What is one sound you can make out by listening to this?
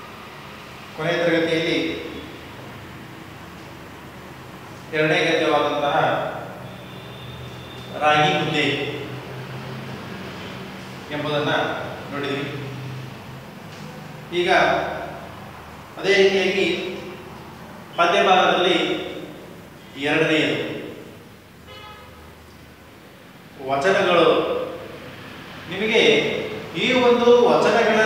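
A young man speaks in short bursts with pauses, close by in a room with a slight echo.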